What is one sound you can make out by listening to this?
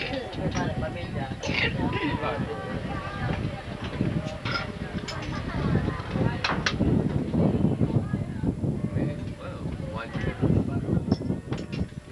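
Several men and women chat casually at a distance.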